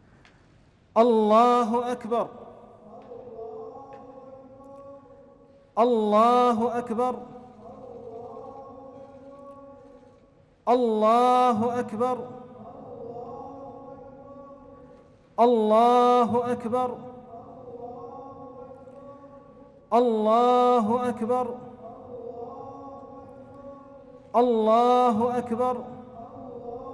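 A man chants in a deep voice through a loudspeaker, again and again, echoing in a large hall.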